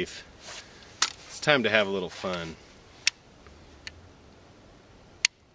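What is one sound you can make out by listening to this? A shotgun's metal parts click and clack as a man handles it.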